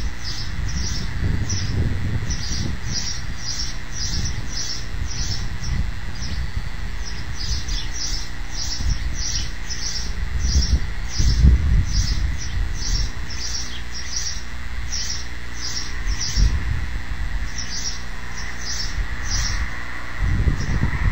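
A young eagle gives repeated high, thin cries.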